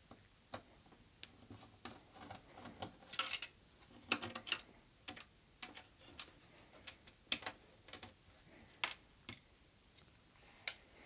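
A screwdriver clicks and scrapes as screws are turned.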